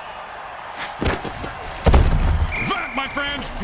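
Armoured players crash together in a heavy tackle.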